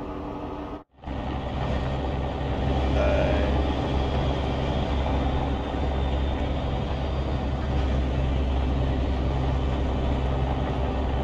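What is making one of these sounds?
A truck's engine rumbles steadily and deeply.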